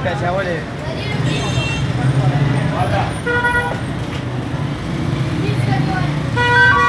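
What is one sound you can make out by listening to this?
A busy street murmurs all around.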